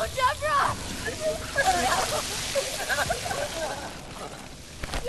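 A young woman screams and cries out in anguish.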